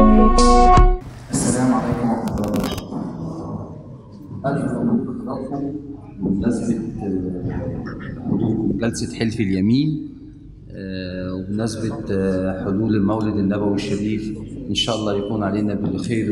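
A man speaks steadily into a microphone.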